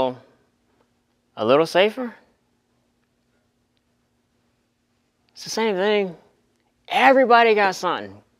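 A young man speaks through a clip-on microphone in short bursts, with long pauses between.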